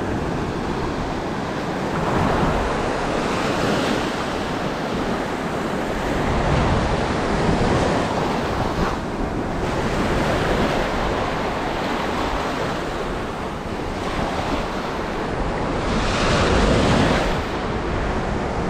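Wind blows across the shore.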